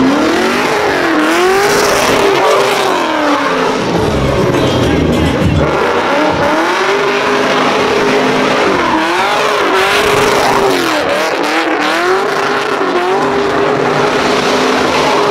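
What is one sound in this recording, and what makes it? Tyres screech on tarmac as a car drifts.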